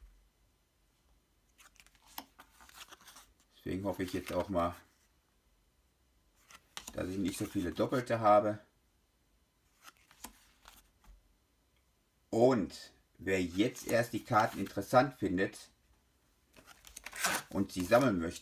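Stiff trading cards rustle and tap softly as they are shuffled by hand.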